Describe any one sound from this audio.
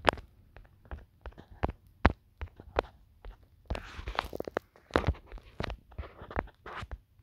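Game blocks are placed with short soft taps.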